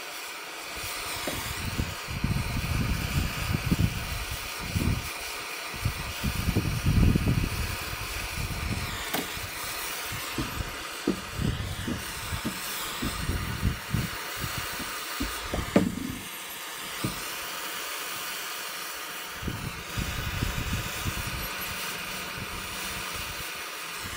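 Wind gusts buffet outdoors.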